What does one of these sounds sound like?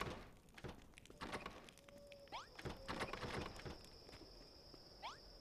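Footsteps tap on stone floors.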